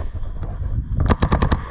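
A paintball marker fires a rapid burst of shots close by.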